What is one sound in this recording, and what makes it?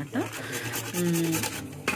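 A carrot scrapes against a metal grater.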